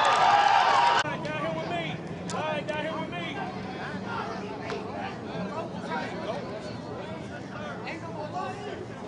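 Young men talk and call out at a distance outdoors.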